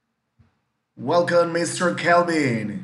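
A man speaks into a microphone on an online call.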